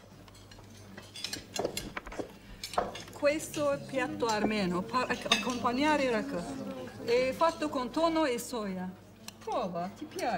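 A middle-aged woman speaks with animation, offering food.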